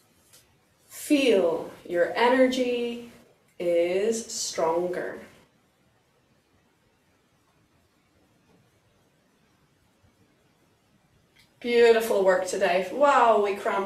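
A woman speaks calmly nearby, with pauses.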